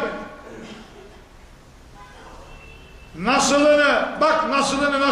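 An elderly man speaks calmly and steadily into a microphone, his voice growing loud and drawn out toward the end.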